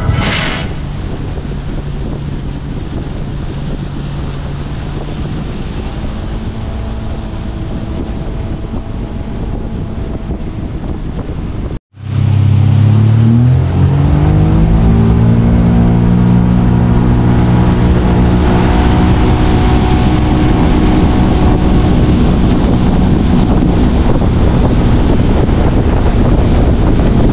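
Wind rushes past a moving boat.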